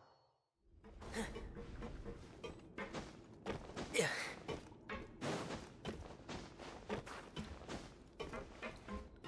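Footsteps thump up wooden stairs.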